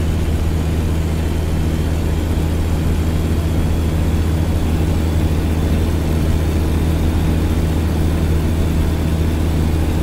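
Rain patters on a truck's windscreen.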